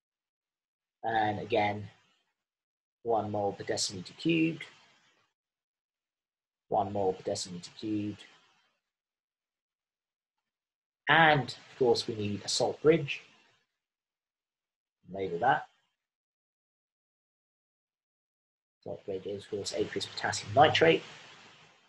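A man speaks calmly and explains into a close microphone, in short phrases with pauses.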